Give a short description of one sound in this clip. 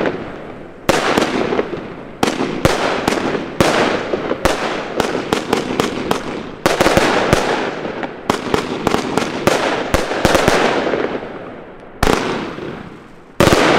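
Fireworks bang and crackle in rapid bursts outdoors.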